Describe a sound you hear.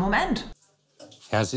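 A woman speaks briefly.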